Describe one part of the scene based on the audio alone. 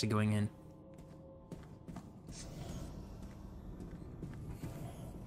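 Footsteps scuff slowly on a stone floor.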